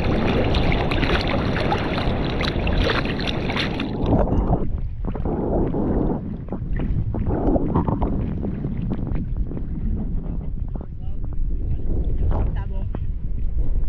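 Water sloshes and splashes close by, heard up close from the water's surface.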